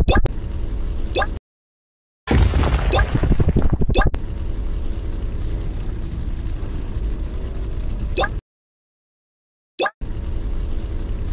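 A small car engine hums steadily.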